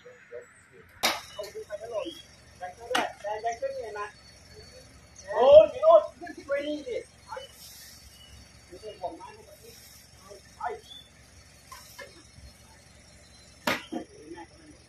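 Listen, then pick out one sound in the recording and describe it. Heavy pots thud against a truck's tailgate.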